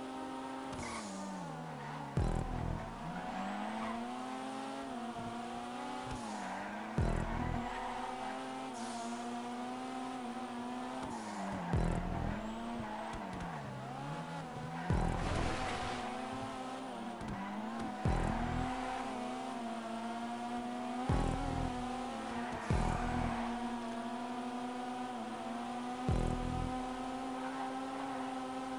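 A car engine revs high and steady, dropping briefly in pitch with each gear change.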